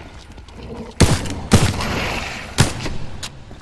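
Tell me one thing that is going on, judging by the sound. A gun fires sharp, loud shots.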